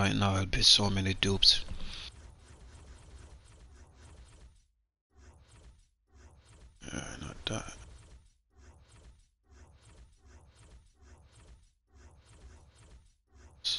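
Soft menu clicks tick as options are switched.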